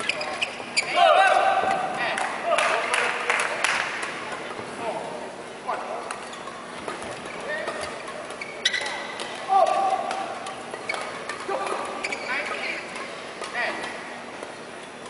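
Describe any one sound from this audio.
Shoes squeak sharply on an indoor court.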